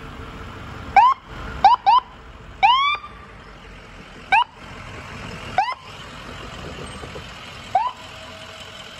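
An ambulance siren gives short, sharp yelps.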